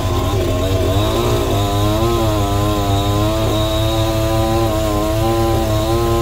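A chainsaw engine runs and revs close by.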